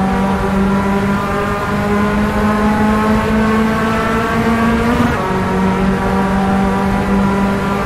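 A race car engine drones steadily at high revs, heard from inside the car.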